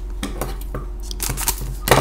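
Scissors snip through a foil wrapper.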